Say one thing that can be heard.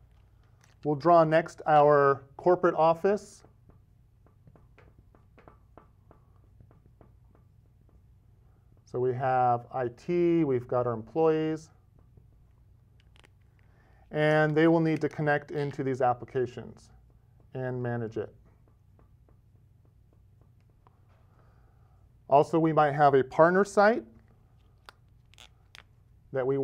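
A middle-aged man speaks calmly and clearly into a close microphone, in short bursts with pauses.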